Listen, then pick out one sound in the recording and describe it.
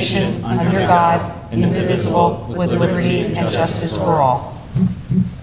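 A group of adults recite together, echoing in a large hall.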